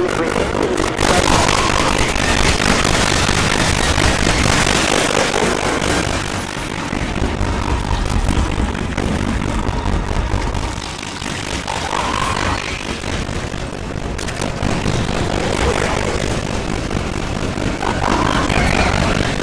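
A flamethrower roars in bursts.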